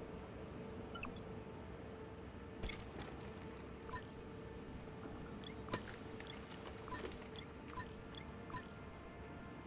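Short electronic menu clicks and blips sound as items are selected.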